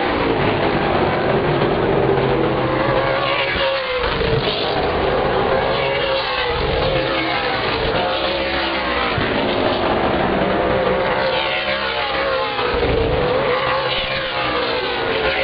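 Race car engines roar loudly around a track.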